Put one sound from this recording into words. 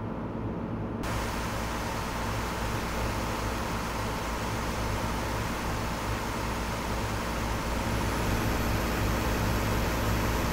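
Tyres hiss and rumble on the road.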